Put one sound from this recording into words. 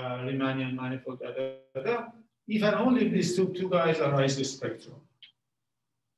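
A man lectures calmly, heard close through a microphone.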